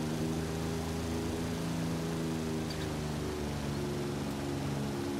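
A car engine hums steadily at a low pitch.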